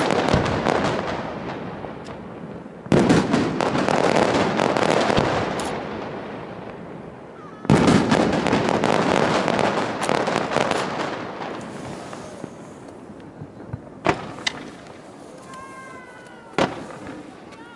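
Fireworks burst with loud booms overhead.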